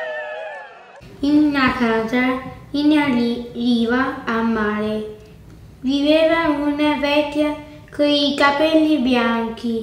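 A young girl reads aloud slowly and haltingly, close by.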